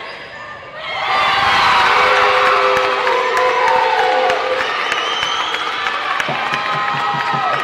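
A crowd cheers and yells loudly.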